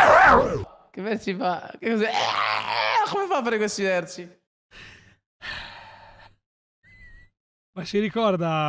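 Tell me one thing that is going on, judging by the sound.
A man laughs close to a microphone.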